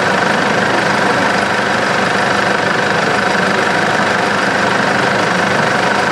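A vehicle engine idles nearby.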